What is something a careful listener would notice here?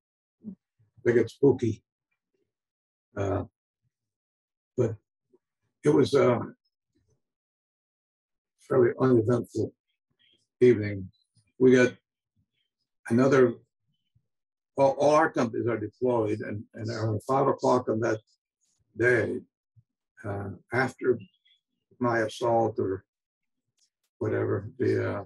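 An elderly man speaks calmly over an online call, with pauses.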